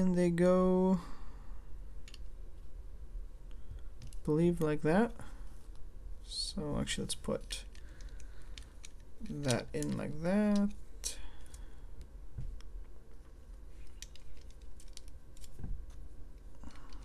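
Plastic toy bricks click and rattle as hands snap them together.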